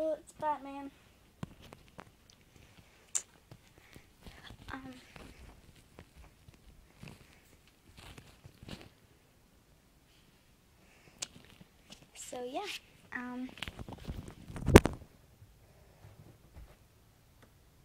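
A phone is handled and bumped, with knocks and rustles.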